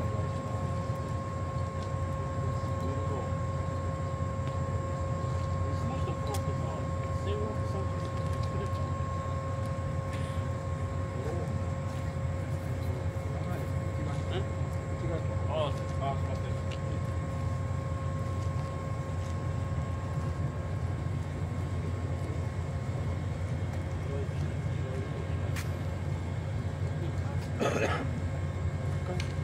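An electric passenger train pulls slowly into a station.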